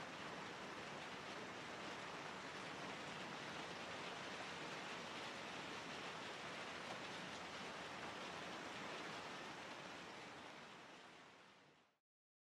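A train rumbles steadily along, then fades away.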